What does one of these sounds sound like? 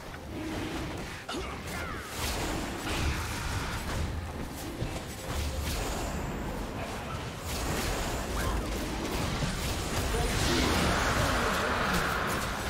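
Magic spells crackle and whoosh in a busy fantasy battle.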